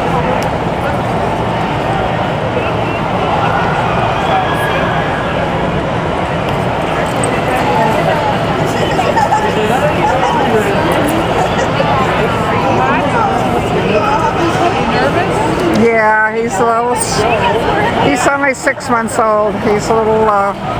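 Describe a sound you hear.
A crowd of adults chatters all around.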